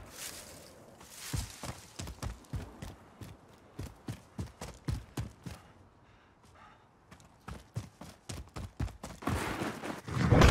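Footsteps crunch quickly through dry grass.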